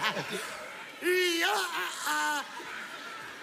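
A man laughs loudly into a microphone.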